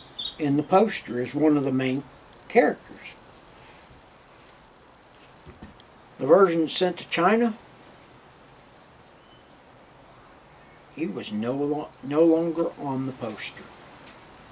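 An elderly man speaks calmly into a nearby microphone, pausing between phrases.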